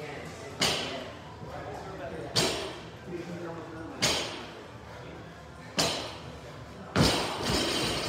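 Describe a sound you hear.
Heavy thuds land on the floor and echo around a large hard room.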